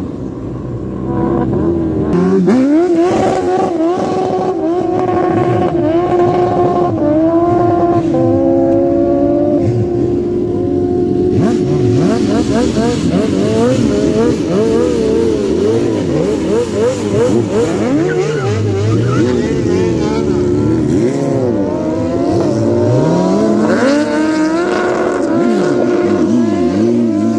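A motorcycle engine revs loudly and roars in bursts, its pitch rising and falling.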